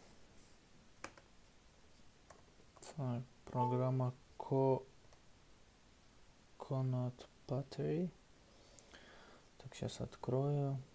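A laptop trackpad clicks now and then.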